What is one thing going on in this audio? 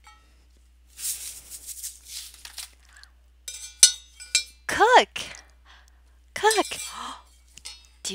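A young woman speaks with animation into a headset microphone.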